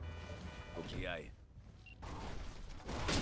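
Glass shatters as a car crashes through a window.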